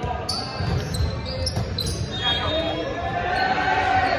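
A volleyball is struck with a hard slap.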